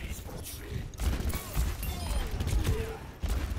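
A pistol fires several loud shots.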